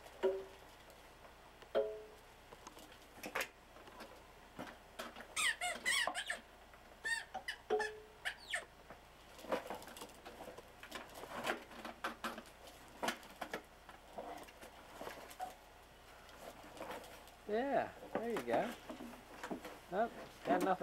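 Plastic wheels of a ride-on toy roll and rattle on carpet.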